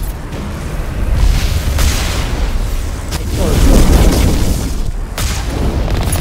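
A cannon fires with loud blasts.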